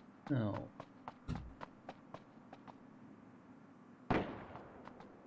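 Footsteps thud quickly and evenly.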